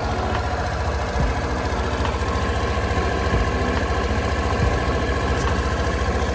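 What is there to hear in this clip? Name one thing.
A scooter's rear wheel spins with a whirring hum.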